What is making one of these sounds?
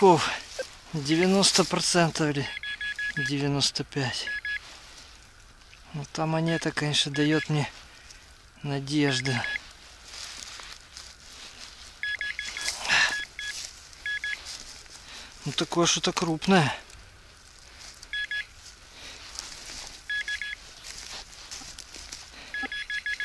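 A knife scrapes and digs into dry soil.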